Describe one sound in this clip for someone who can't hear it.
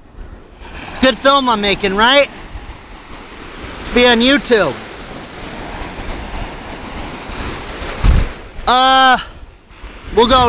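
A young man calls out loudly nearby.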